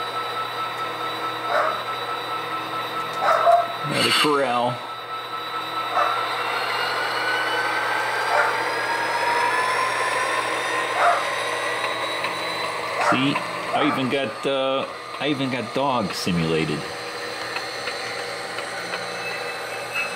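A model train hums steadily as it runs along the track.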